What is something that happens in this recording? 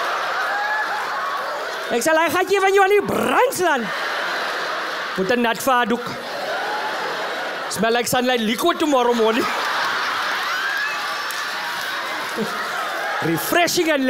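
An audience laughs and chuckles throughout.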